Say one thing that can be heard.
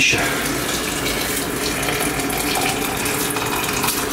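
Water pours from a kettle into a glass jug.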